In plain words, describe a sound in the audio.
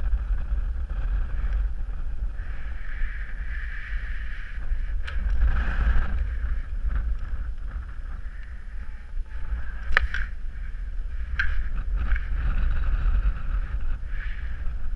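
A paraglider wing flutters and rustles overhead.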